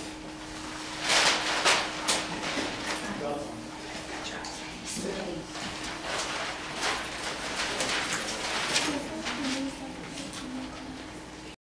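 Large paper sheets rustle and crackle.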